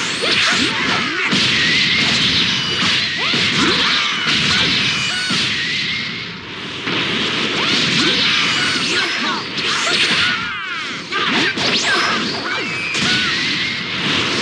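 Punches and kicks land with sharp impacts.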